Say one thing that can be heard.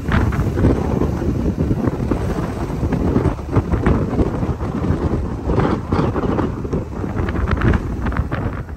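Wind buffets and rushes past an open car window.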